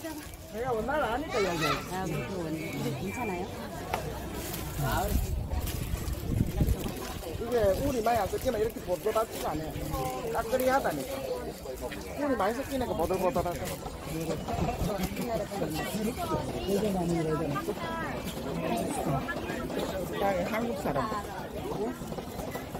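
Several women talk with animation close by.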